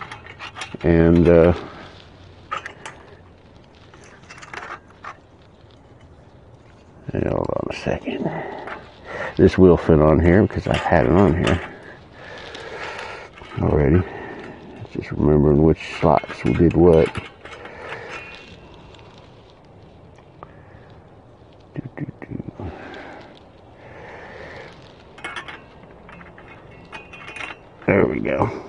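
Small metal parts clink and click as they are handled.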